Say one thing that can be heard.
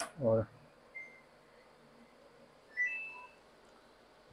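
An appliance panel beeps in short high tones.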